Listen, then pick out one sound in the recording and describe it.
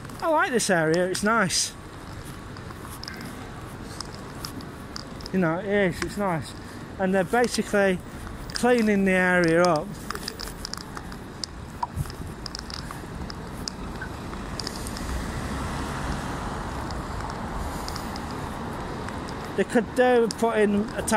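Footsteps scuff on a paved street.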